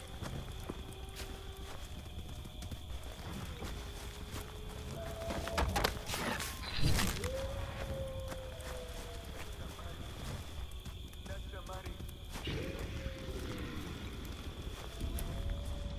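A burning torch flame crackles.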